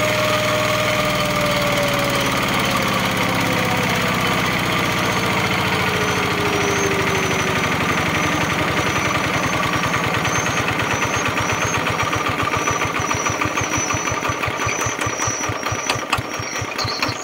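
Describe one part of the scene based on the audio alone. A diesel engine's chugging slows to a slower, heavier beat.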